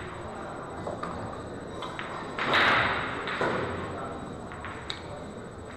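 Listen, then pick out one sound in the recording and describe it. Pool balls click together and roll across the cloth.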